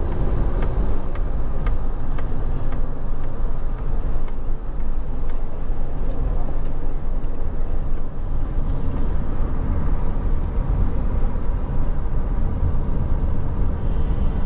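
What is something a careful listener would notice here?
Traffic hums and tyres roll past on a busy road.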